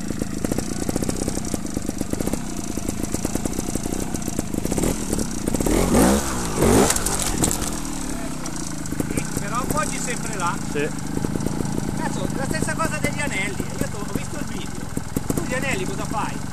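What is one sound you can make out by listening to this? A motorcycle engine idles close by with a rapid putter.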